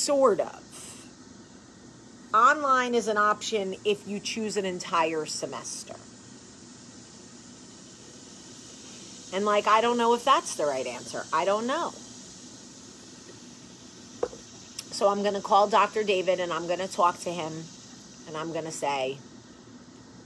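A woman talks calmly and close by, in bursts with pauses.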